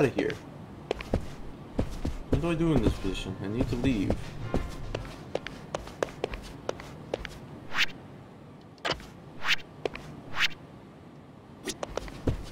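Hard-soled footsteps tap steadily on a floor.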